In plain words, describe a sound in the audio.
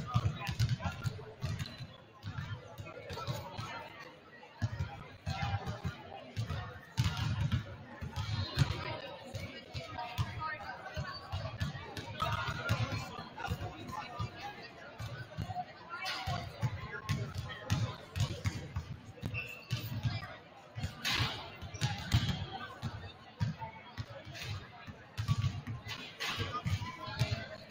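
A basketball bounces repeatedly on a hardwood floor in a large echoing gym.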